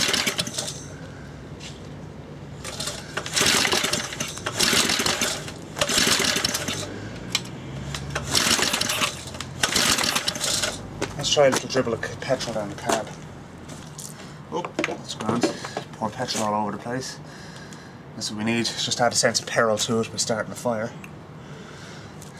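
A screwdriver scrapes and clicks against a small engine's metal parts.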